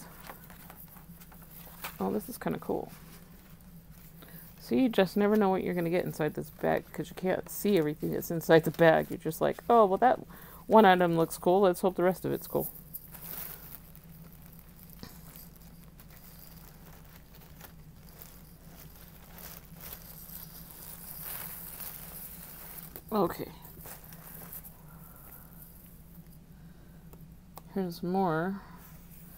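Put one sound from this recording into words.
Sheets of paper rustle and shuffle as hands handle them.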